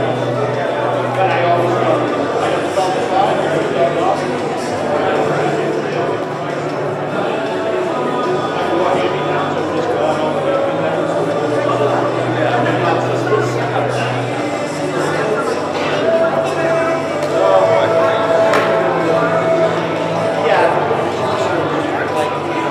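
A crowd of men and women chat at once in a large echoing hall.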